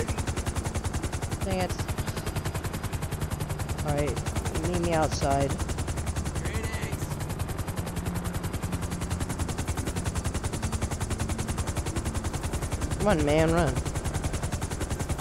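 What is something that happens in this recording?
A helicopter's rotor thumps in a fast, steady beat.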